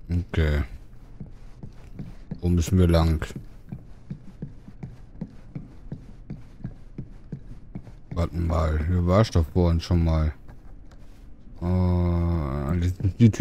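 Footsteps walk steadily across a wooden floor.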